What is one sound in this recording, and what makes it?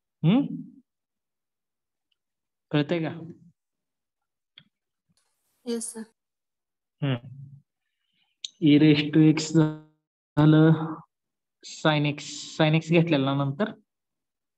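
A man speaks calmly into a microphone, explaining in short phrases.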